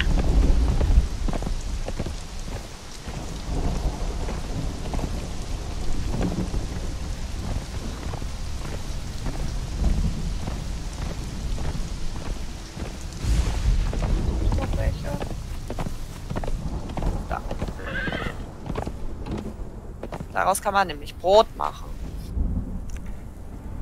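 Hooves thud in a steady rhythm on dirt as an animal trots along.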